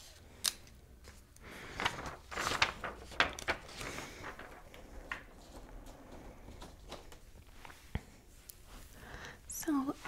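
A young woman whispers close to a microphone.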